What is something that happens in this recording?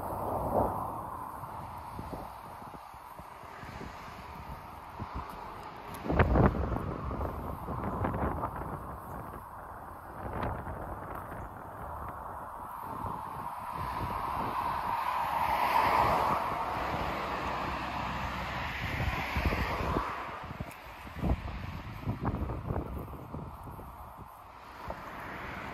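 Wind gusts outdoors, buffeting the microphone with a low rumble.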